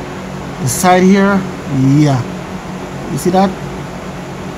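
A man speaks calmly close to a microphone.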